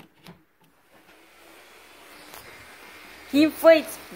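An electric blower fan starts up and whirs steadily, growing louder.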